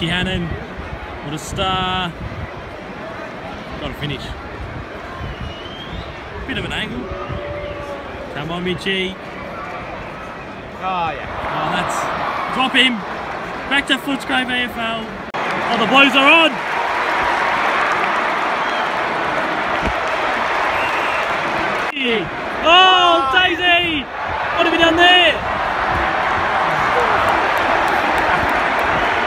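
A large stadium crowd murmurs and cheers, loud and echoing.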